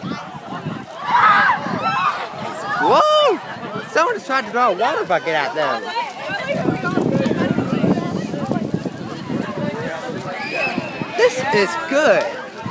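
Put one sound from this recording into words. A young woman shouts excitedly close by.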